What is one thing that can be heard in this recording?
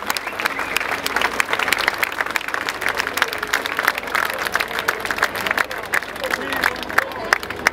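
A crowd claps along in rhythm outdoors.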